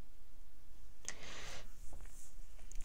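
A card slides and rustles across paper.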